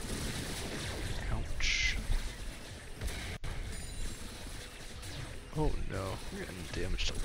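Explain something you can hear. Video game spell effects zap and whoosh during a fight.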